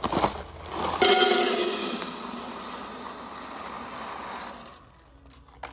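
Small hard beads pour and rattle into a metal pot.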